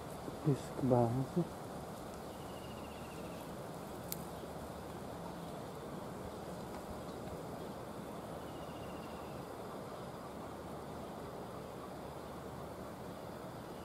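A diesel locomotive engine rumbles steadily nearby.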